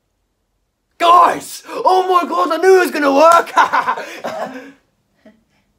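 A young man shouts and laughs excitedly up close.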